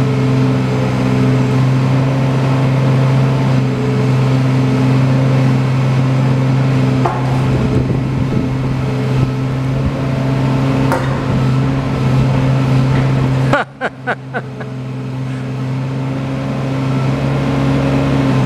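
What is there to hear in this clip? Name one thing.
Hydraulics whine as an excavator arm swings and moves.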